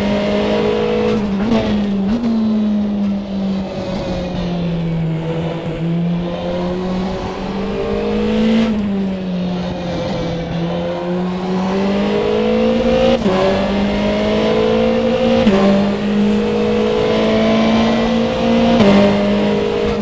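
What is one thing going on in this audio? A racing car engine roars loudly, its pitch dropping through corners and climbing as it speeds up.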